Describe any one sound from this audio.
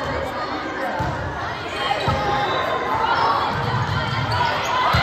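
A volleyball is struck with a thump.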